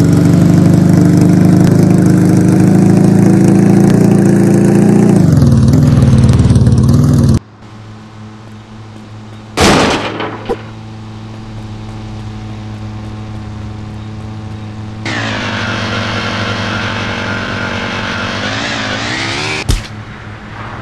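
A motorbike engine hums steadily, then cuts out.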